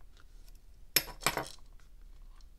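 A plastic shell snaps loose as it is pried off.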